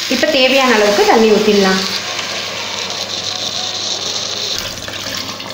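Water pours and splashes into a pot.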